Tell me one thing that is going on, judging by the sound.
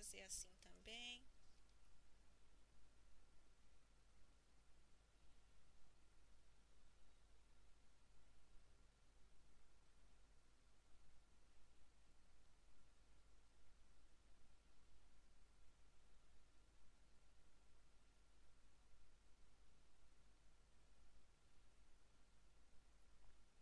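Fingers softly knead and press modelling clay.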